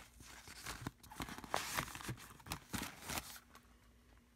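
Plastic markers clatter and rattle against each other.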